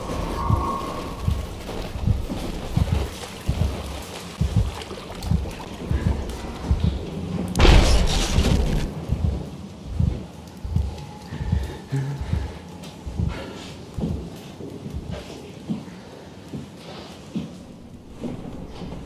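Footsteps clang steadily on a metal floor.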